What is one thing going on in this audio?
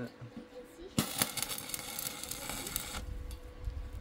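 An electric tool grinds on sheet metal with a harsh hiss.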